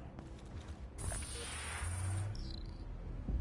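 A menu opens with a soft whoosh and a chime.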